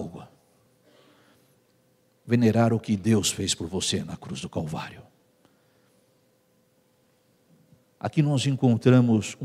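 A man speaks with animation into a microphone, in a large echoing hall.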